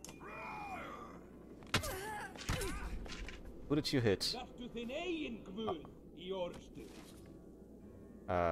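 Swords clash and strike in a battle.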